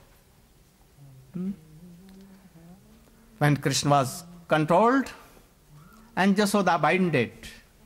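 An elderly man speaks calmly into a microphone, in bursts with pauses.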